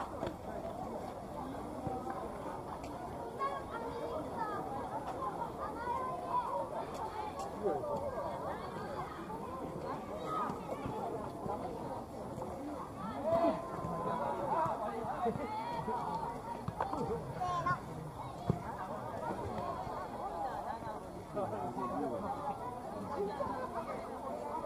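A crowd of men and women chatters and laughs nearby outdoors.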